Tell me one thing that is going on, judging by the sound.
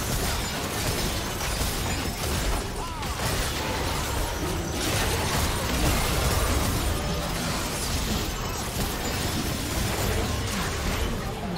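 Video game fight sounds clash and burst with spell blasts and hits.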